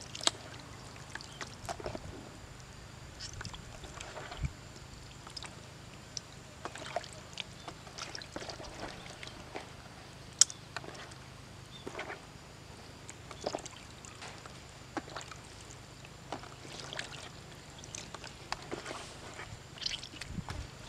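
Fish simmer and sizzle softly in a pot.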